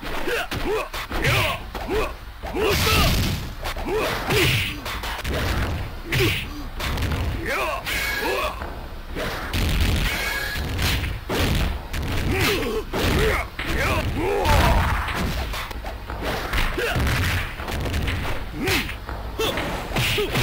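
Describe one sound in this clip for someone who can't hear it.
Fighters let out short cries as they attack.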